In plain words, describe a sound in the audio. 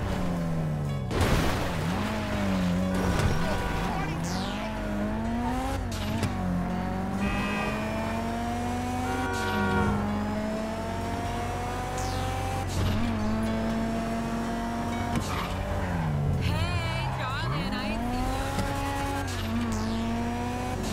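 A car engine revs up and down as it shifts through gears.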